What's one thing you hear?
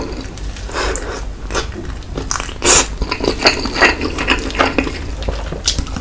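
A man bites and chews crunchy coated fried chicken close to a microphone.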